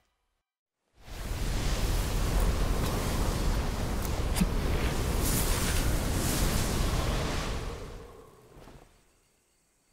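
A magical energy whooshes and roars in a steady rush.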